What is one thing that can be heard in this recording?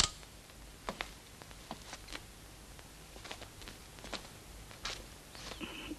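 A cigarette lighter clicks and flicks.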